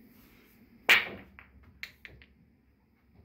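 Pool balls clack against each other and roll across the table.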